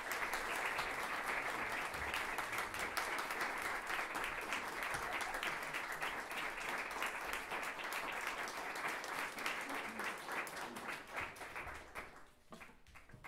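An audience applauds loudly, then the clapping fades.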